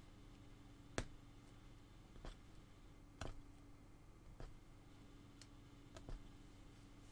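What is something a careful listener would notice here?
A needle punches through stretched cloth with soft clicks.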